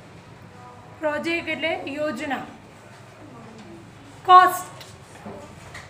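A young woman speaks loudly nearby.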